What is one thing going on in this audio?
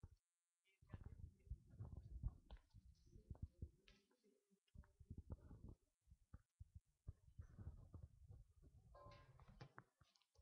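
Book pages rustle and turn.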